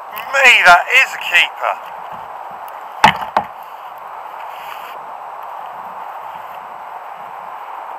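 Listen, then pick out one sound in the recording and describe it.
Water laps steadily against a kayak.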